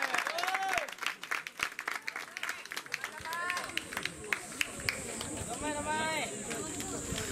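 Young women call out short, lively cheers outdoors.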